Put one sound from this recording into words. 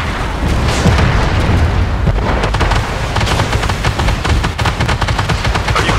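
Heavy gunfire booms.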